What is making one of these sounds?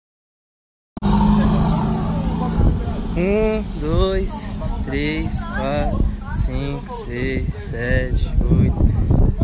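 Young men talk and shout outdoors.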